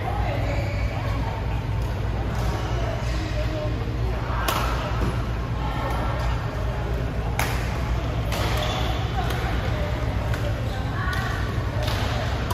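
Young women call out during play in an echoing hall.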